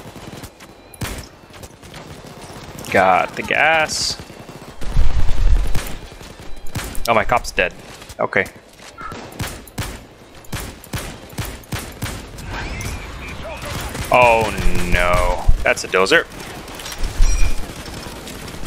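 Rifle shots fire in quick bursts.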